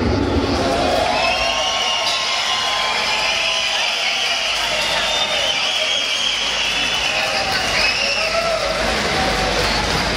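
A band plays lighter live music.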